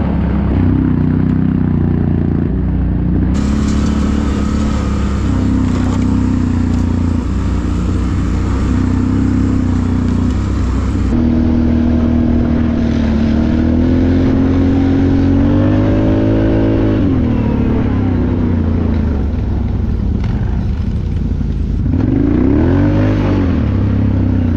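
A quad bike engine drones loudly nearby, revving up and down.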